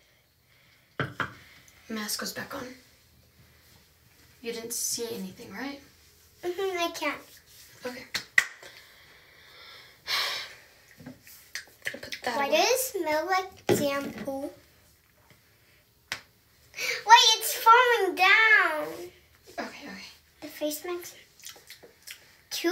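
A young girl talks close by, with excitement.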